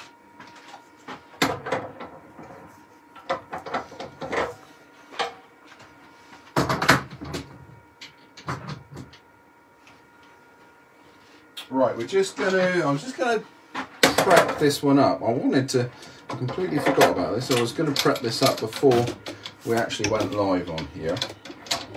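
Metal parts clink and click together.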